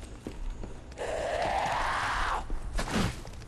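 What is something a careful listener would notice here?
A blade whooshes through the air in a fierce strike.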